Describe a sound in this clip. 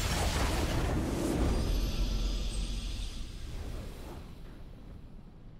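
A triumphant game fanfare blares and fades.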